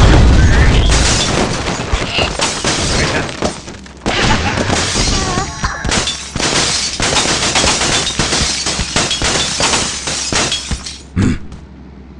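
Wooden and glass blocks clatter and shatter in a video game.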